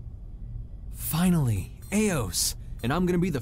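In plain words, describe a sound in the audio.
A young man with a bright voice speaks eagerly, close up.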